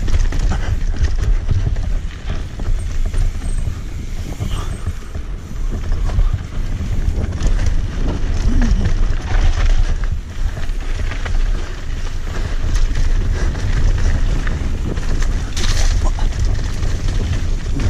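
Wind rushes loudly past a rider on a bike.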